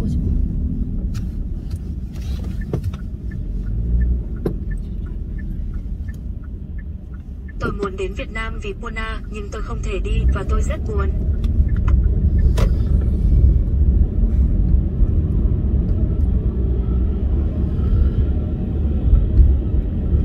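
A car engine hums steadily with road rumble.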